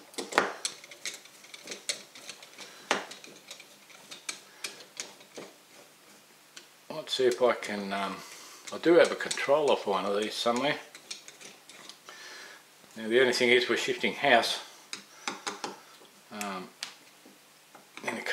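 A screwdriver scrapes and clicks against metal screws.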